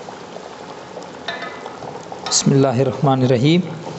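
A wooden spoon scrapes and stirs inside a metal pot.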